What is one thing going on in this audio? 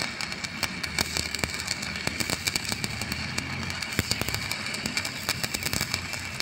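An arc welder crackles and sizzles steadily, with sharp pops.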